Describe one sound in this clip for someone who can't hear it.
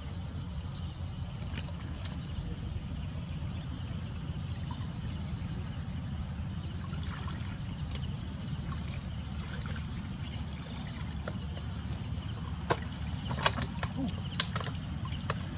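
Water splashes and sloshes as a pipe is moved through shallow water.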